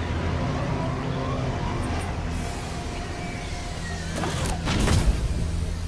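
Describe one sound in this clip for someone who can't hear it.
A spacecraft's engines roar as it descends.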